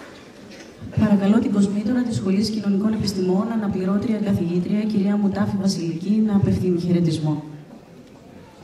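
A woman speaks clearly through a microphone in a large echoing hall.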